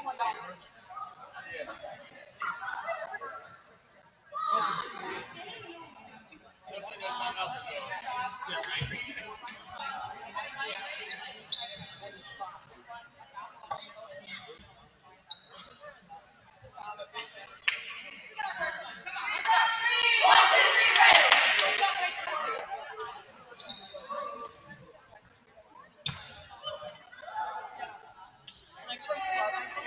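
Players and spectators chatter and call out in a large echoing gym.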